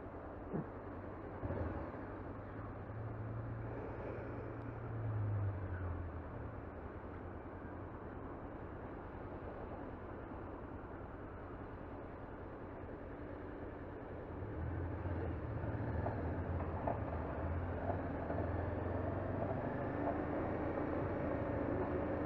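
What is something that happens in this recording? A motorcycle engine idles and revs up close.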